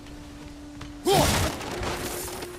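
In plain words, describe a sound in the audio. A heavy body lands with a loud thump on wood.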